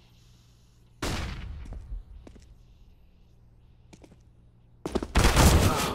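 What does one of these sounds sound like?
Rapid gunshots crack out close by.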